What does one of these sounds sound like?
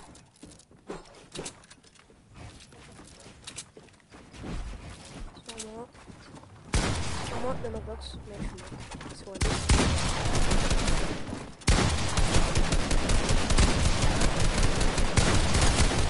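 Video game gunfire cracks in quick bursts.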